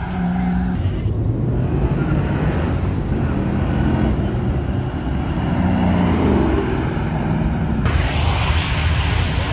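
Car engines rumble and roar loudly as cars drive past outdoors.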